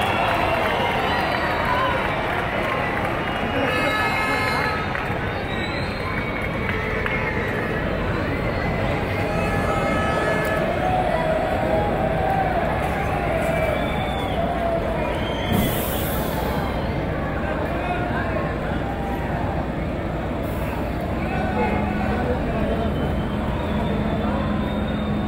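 A bus engine rumbles as the bus rolls slowly past.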